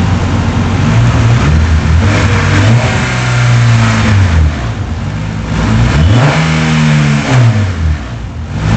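A car engine revs up and falls back several times.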